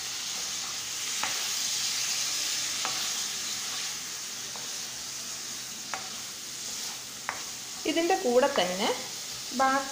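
A spatula scrapes and clinks against a pan.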